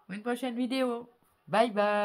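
An older woman speaks cheerfully close by.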